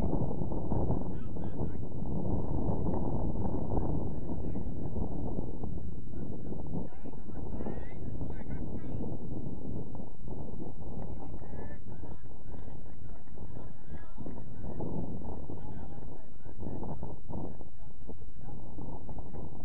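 Young men shout to each other in the distance.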